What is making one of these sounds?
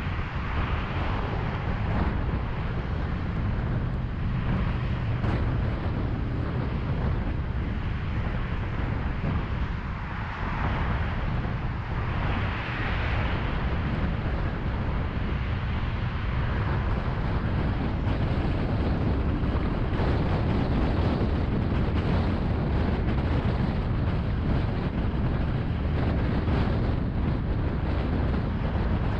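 A car's engine and tyres rumble steadily along a highway.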